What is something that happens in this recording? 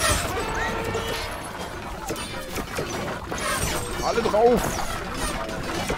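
Weapons swish and strike in a noisy game battle.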